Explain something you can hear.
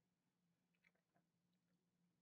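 A young man makes a brief, quiet sound into a headset microphone.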